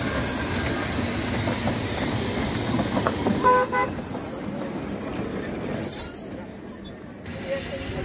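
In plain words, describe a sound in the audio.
An old car engine rumbles and chugs close by.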